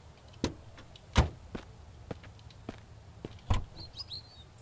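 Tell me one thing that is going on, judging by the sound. An axe strikes a car's metal body with heavy thuds.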